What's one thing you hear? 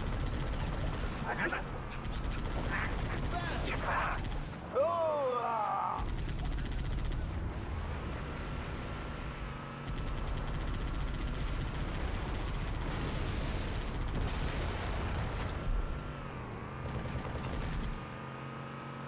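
A vehicle engine rumbles steadily as it drives over rough ground.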